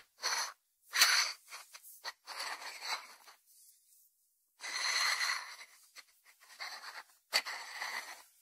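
A ceramic dish knocks softly against a wooden board.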